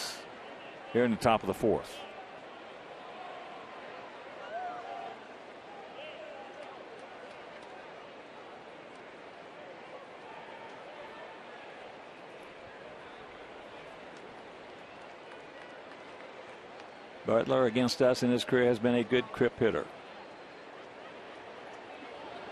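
A large crowd murmurs softly outdoors.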